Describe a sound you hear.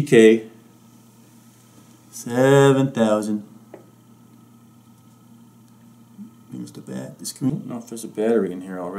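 A middle-aged man speaks close to a microphone in short bursts, with pauses.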